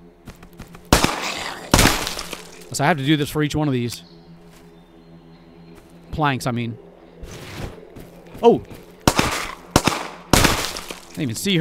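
A pistol fires loud shots.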